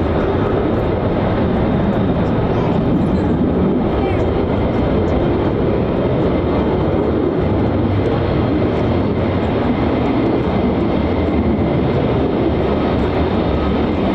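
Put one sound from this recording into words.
A jet engine roars loudly and steadily overhead.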